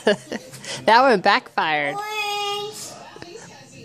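A young child squeals and babbles in a high voice close by.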